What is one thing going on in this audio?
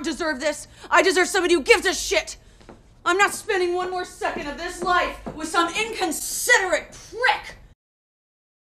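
A young woman shouts angrily and close by.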